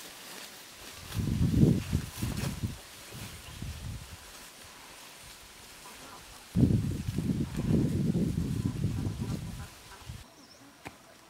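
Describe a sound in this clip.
Leaves and grass rustle as a child pushes through plants.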